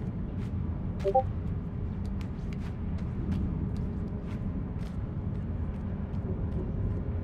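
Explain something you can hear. Light footsteps patter quickly across a wooden floor.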